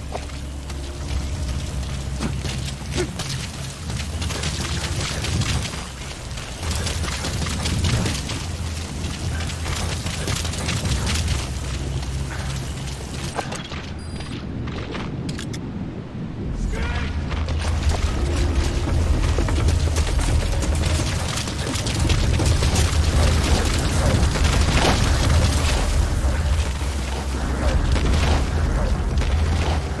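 Leaves and grass rustle as someone crawls through dense undergrowth.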